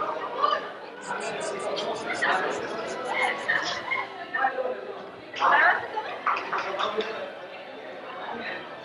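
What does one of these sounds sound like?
Several women talk and chatter nearby.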